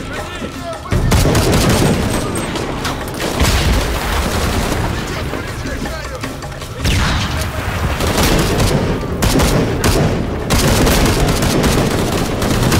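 Rapid gunfire bursts out in loud cracks.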